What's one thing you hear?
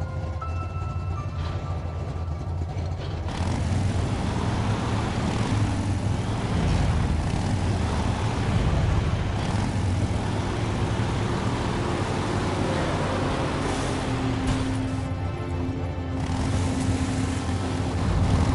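A buggy engine rumbles and revs as it drives over rough ground.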